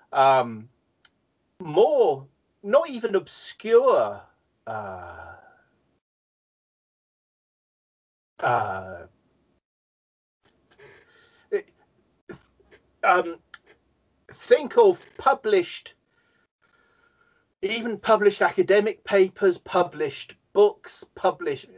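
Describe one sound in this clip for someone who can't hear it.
A middle-aged man speaks with animation over an online call, with pauses.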